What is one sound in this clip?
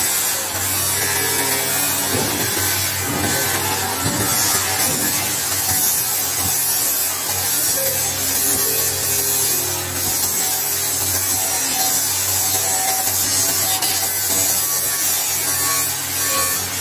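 A power tool grinds steadily against metal.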